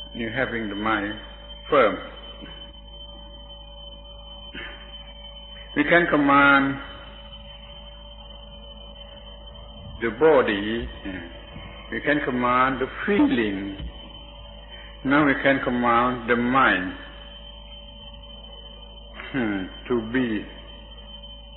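An elderly man speaks calmly in short phrases with long pauses, heard through an old recording.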